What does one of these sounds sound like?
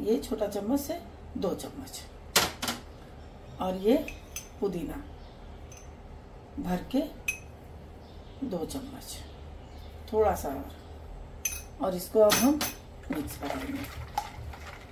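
A metal spoon clinks against a steel pot.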